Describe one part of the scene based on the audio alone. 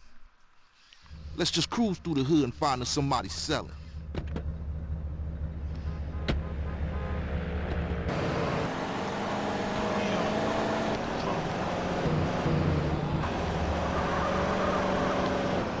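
A car engine hums and revs as the car drives off.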